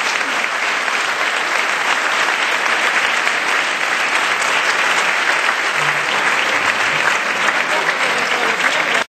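A large crowd chatters loudly in an echoing hall.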